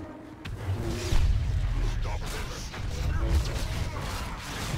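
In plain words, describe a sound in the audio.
An explosion booms loudly.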